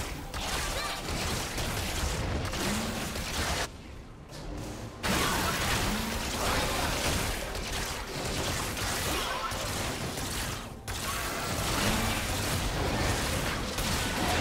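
Magic blasts crackle and whoosh in a fast fight.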